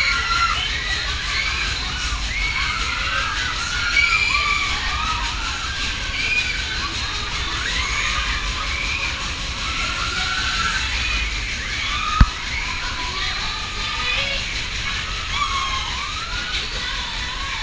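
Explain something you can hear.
A fairground ride rumbles and whirs steadily as its cars spin past.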